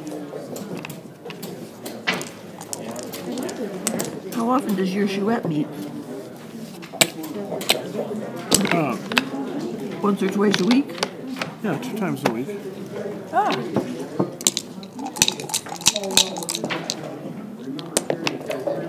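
Plastic game pieces click against a wooden board.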